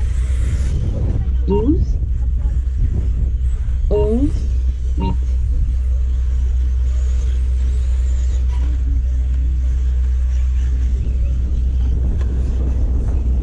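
A small electric motor of a model car whines as the car speeds over a dirt track.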